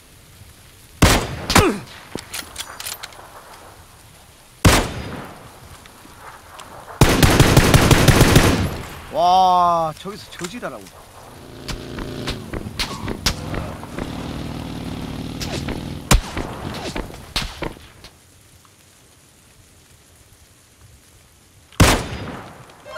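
Gunshots crack sharply from a game.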